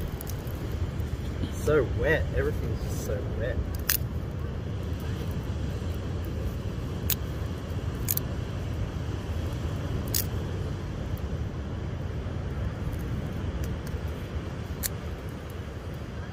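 Dry twigs snap and click as they are broken and placed on a fire.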